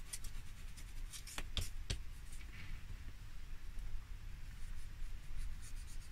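A tool scrapes softly across a card.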